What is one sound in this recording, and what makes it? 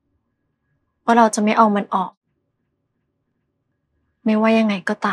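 A young woman speaks in an upset, tearful voice.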